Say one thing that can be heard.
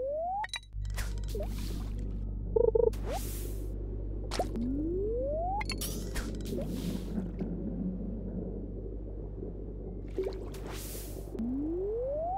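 A fishing line swishes as it is cast out.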